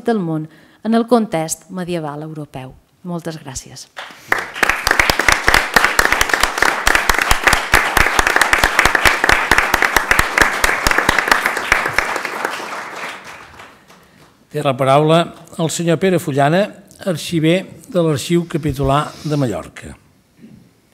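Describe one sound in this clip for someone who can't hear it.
A middle-aged woman speaks calmly into a microphone in an echoing room.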